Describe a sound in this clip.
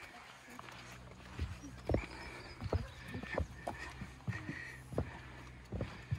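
Small footsteps thump on a wooden footbridge.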